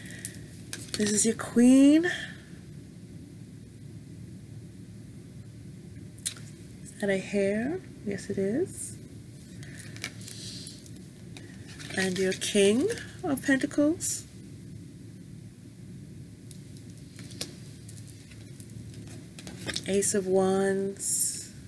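A middle-aged woman speaks with animation close to the microphone, in short bursts.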